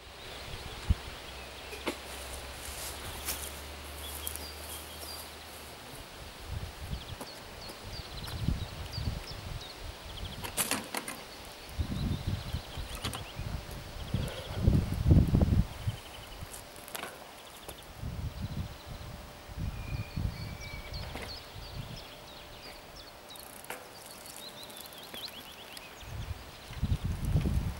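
Wind gusts blow across the microphone outdoors.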